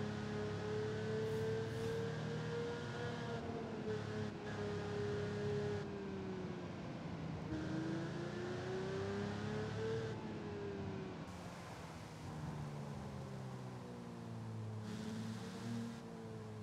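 Tyres hum on a wet road.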